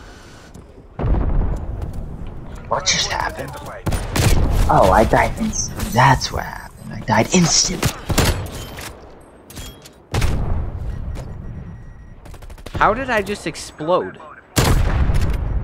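A sniper rifle fires loud, sharp shots.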